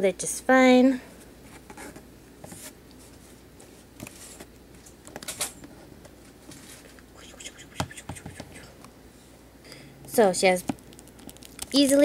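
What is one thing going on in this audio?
A plastic toy figure clicks and taps softly as it is handled.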